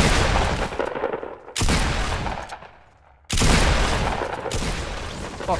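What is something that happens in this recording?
Loud gunshots blast in quick bursts.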